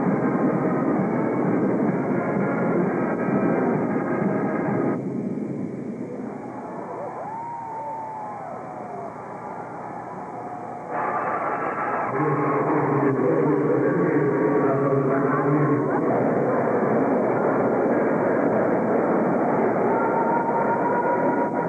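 A marching band plays brass and drums in a large echoing hall.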